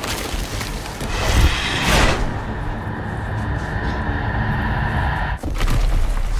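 A deep rumbling roar swells and fades.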